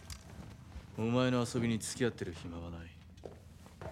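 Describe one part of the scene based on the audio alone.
A young man speaks quietly and calmly.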